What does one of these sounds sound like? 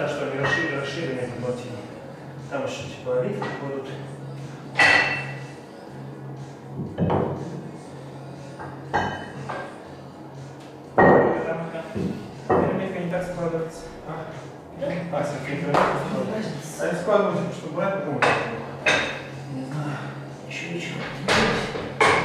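Men talk nearby in a room with some echo.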